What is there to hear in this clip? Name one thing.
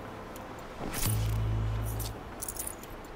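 A short low chime sounds as items are picked up.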